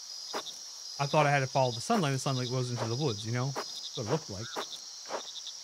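A man talks into a close microphone in a relaxed tone.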